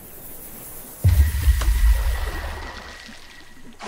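A fish splashes heavily into water.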